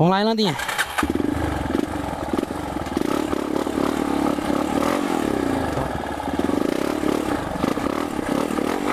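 A single-cylinder trail motorcycle engine runs while riding along a dirt trail.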